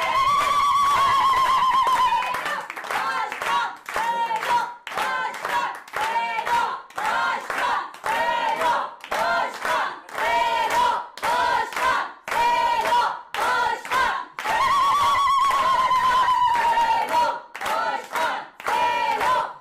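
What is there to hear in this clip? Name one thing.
A group of people clap their hands in rhythm.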